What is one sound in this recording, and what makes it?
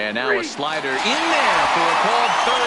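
A stadium crowd roars loudly.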